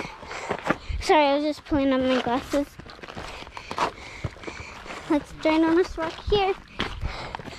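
A young child talks loudly and in a high voice close by.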